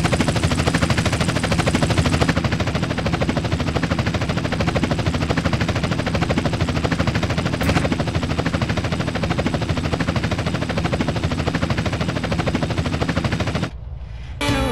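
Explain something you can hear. A helicopter's rotor chops loudly and steadily.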